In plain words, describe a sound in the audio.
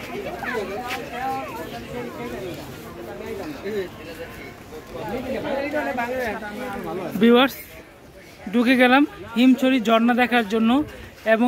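Men talk and call out nearby in a busy outdoor crowd.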